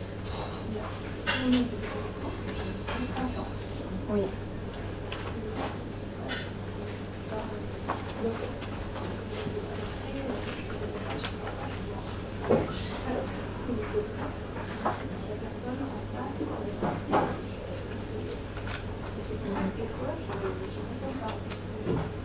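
A young woman speaks calmly into a microphone, heard through a loudspeaker in a room.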